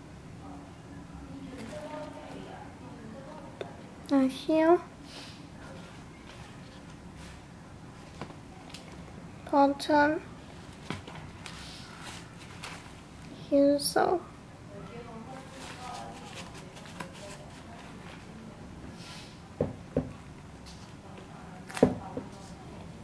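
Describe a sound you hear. Hands rustle and tap against sneakers.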